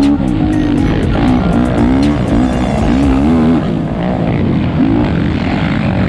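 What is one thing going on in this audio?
A quad bike engine revs loudly up close, rising and falling in pitch.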